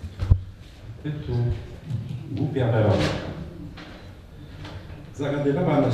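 An elderly man speaks calmly into a microphone, heard through loudspeakers.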